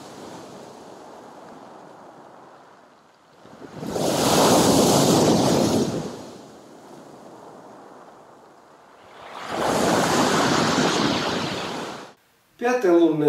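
Waves crash and surge onto a pebble beach.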